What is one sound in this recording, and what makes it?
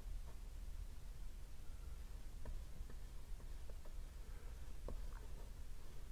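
A paintbrush dabs and taps softly on canvas.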